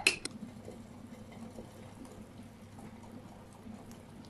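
A pot of broth simmers and bubbles softly.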